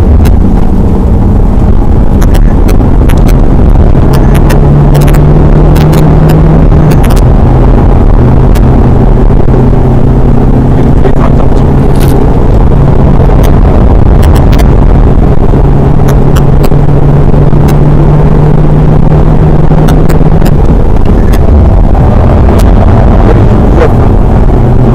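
Small clicks and knocks rattle inside the car.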